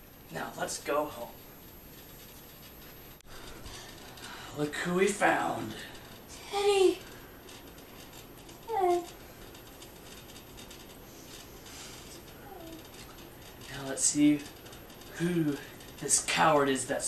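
A teenage boy talks casually nearby.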